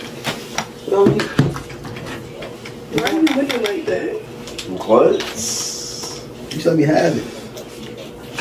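Young men talk and laugh loudly nearby.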